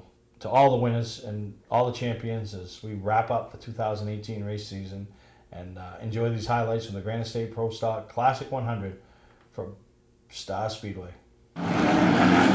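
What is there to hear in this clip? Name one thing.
A middle-aged man speaks with animation into a microphone.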